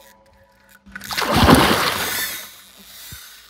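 A fish thrashes and splashes loudly at the water's surface.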